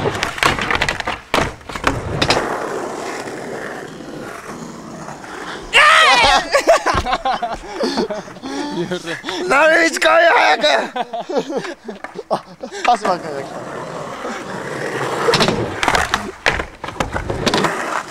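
A skateboard clatters and grinds against a concrete ledge.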